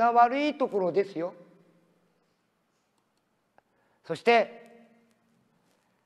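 A man speaks into a microphone, echoing through a large hall.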